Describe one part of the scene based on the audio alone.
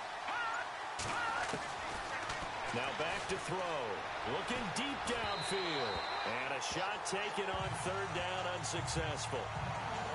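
Football players' pads clatter and thud as they collide.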